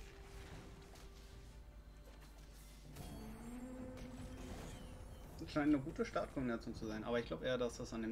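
Game spells whoosh and crackle as small figures battle.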